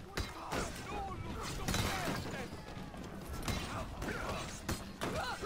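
Swords clash and strike repeatedly in a chaotic battle.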